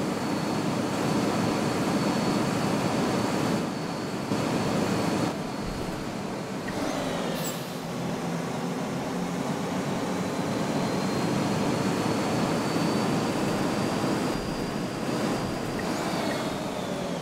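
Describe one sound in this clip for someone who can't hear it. A bus engine whines higher as the bus speeds up.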